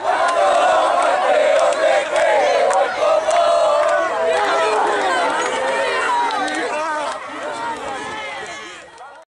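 A crowd of young men cheers and chants loudly outdoors.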